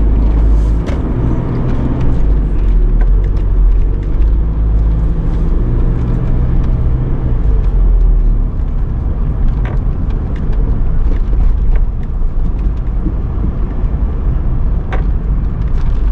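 Tyres roll over the road with a low rumble.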